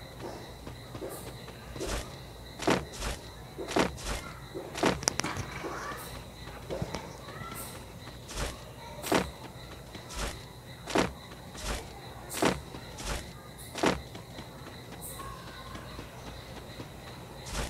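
Footsteps thud on a metal bridge.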